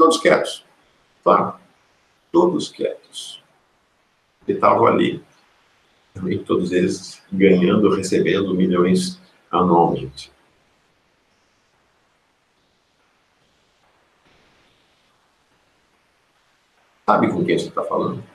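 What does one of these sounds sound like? A middle-aged man speaks calmly, close, over an online call, with pauses.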